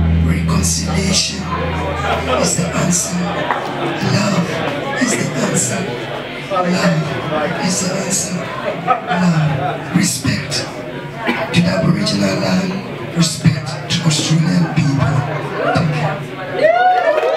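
A man sings into a microphone over loudspeakers.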